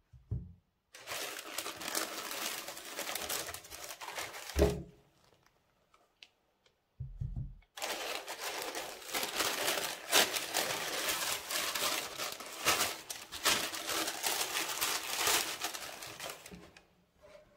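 Tissue paper rustles and crinkles close by.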